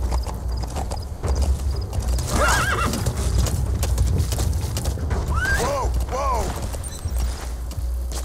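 A horse's hooves clop steadily on dirt.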